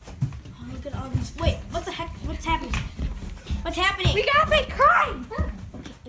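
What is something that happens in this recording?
Footsteps thump down stairs.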